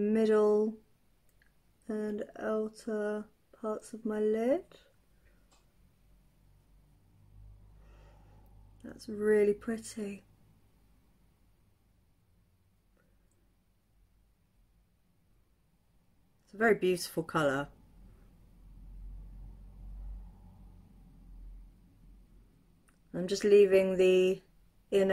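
A woman talks calmly and close by, pausing between phrases.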